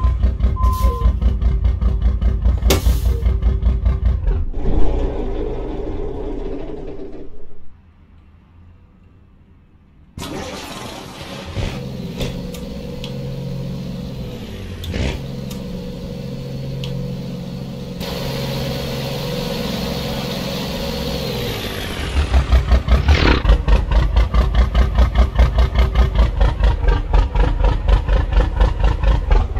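A truck engine rumbles at idle.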